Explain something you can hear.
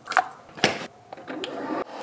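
A lid snaps shut on a coffee machine.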